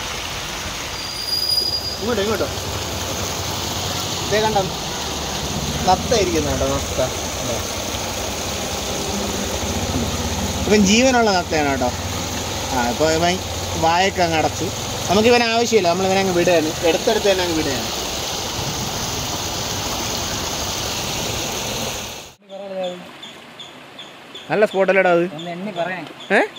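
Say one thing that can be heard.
Water trickles and splashes steadily.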